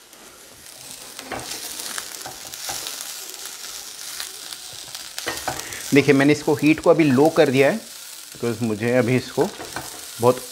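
A spatula scrapes and stirs vegetables in a frying pan.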